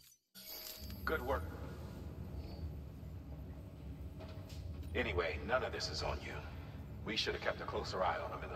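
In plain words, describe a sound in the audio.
A middle-aged man speaks calmly through a slightly electronic-sounding speaker.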